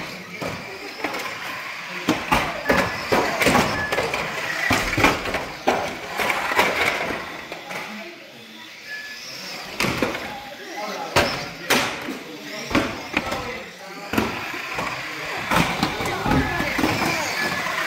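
Small toy cars whir along a track.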